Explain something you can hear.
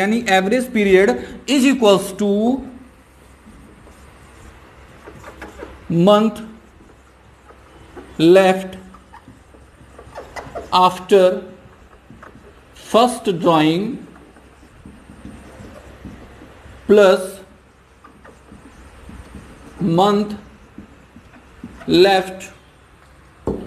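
A young man speaks calmly in short bursts with pauses, close by.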